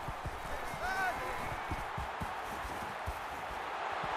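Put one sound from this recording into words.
Football players' pads thud together in a tackle.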